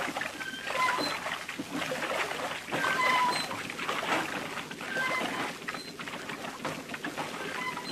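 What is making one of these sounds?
Machinery clatters and rattles.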